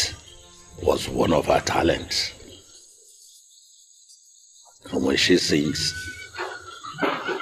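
A deep-voiced man speaks calmly and earnestly, close by.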